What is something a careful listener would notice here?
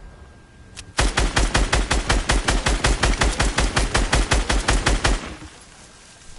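A pickaxe chops rapidly and steadily at wood.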